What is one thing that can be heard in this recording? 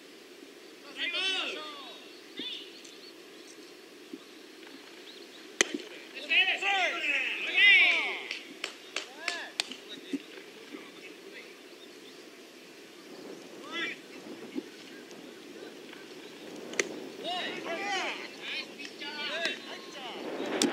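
Young men shout calls across an open field.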